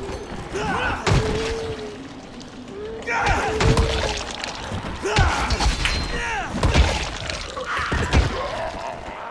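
Heavy blunt blows thud and crunch into bodies.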